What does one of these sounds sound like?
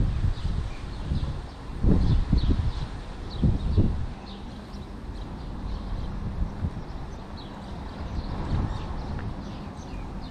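Wind gusts blow across the open air outdoors.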